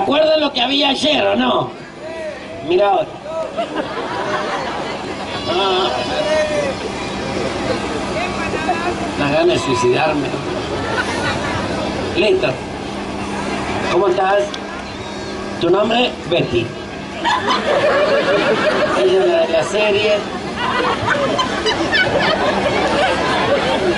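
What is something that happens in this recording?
A crowd of young people chatters and calls out outdoors.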